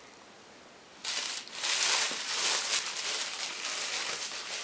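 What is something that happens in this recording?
Plastic wrapping rustles and crinkles as it is pulled.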